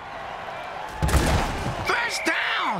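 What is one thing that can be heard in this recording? Football players collide with a heavy thud.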